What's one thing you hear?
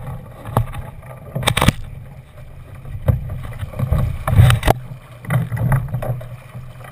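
Water splashes against a small boat's hull.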